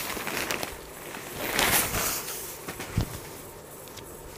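Silk fabric rustles as it is unfolded and spread out.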